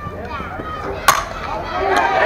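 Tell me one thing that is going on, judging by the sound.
A metal bat strikes a softball with a sharp ping.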